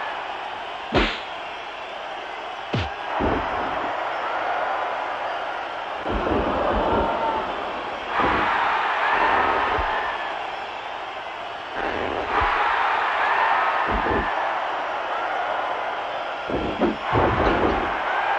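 Heavy thuds of bodies slamming onto a mat sound now and then.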